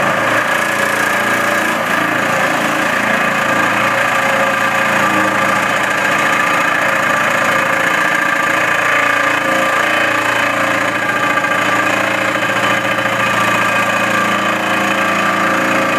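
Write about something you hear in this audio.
A vibratory pile driver hums and rattles loudly and steadily.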